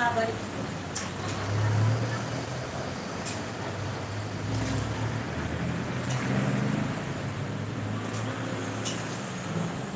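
A knife knocks on a cutting board now and then.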